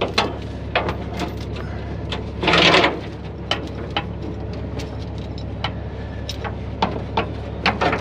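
A metal chain rattles and clinks against metal.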